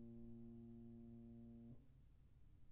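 A piano chord is held, ringing steadily, then cut off abruptly.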